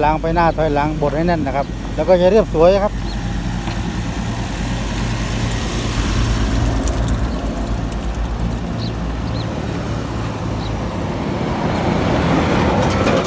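A road roller's diesel engine rumbles steadily nearby.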